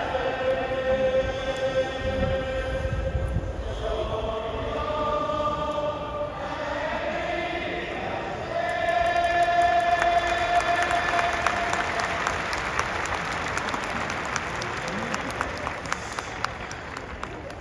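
A large crowd sings together in an open stadium.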